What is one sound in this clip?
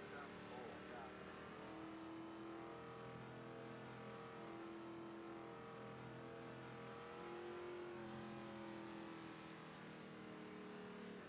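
A race car engine hums steadily at low speed.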